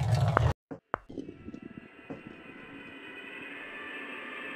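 A ball rolls over stone with a soft, steady hum.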